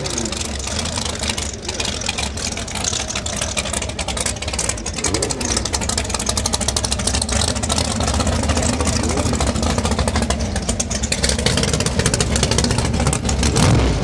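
A race car engine idles loudly with a rough, popping rumble.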